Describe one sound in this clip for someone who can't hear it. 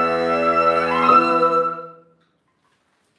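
A woodwind ensemble holds a final chord that rings out and fades.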